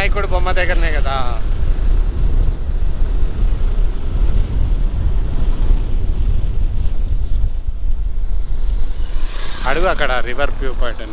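Wind rumbles strongly against a microphone outdoors.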